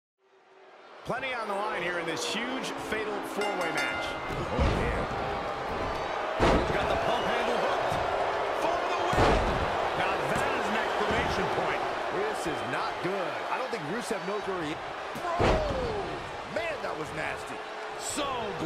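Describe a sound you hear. A large crowd cheers and shouts in a big arena.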